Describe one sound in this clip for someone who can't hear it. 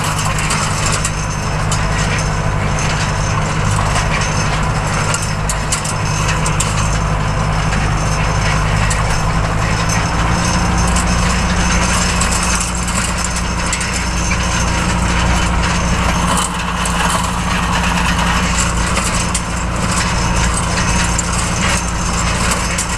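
A mower attachment rattles and clatters behind a tractor.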